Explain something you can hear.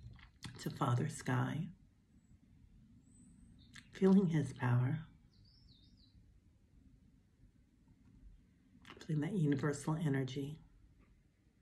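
A middle-aged woman speaks calmly and close by, with pauses.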